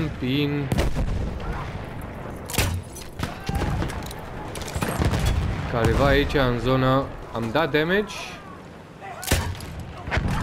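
A heavy weapon fires with sharp bangs.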